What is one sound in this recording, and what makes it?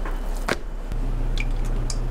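Oil hisses out of a spray bottle.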